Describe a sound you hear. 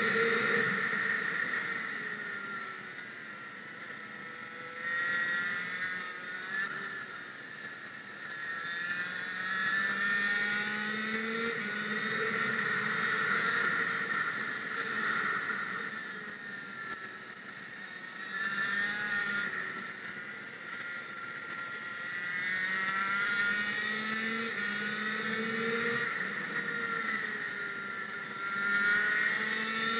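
A kart engine buzzes close by, rising and falling in pitch as it speeds up and slows through the bends.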